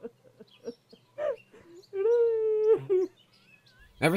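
A man laughs mockingly.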